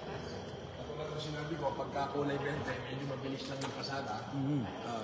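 A man talks calmly, close by.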